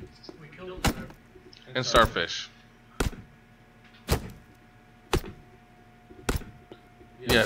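An axe chops into a tree trunk with sharp, regular thuds.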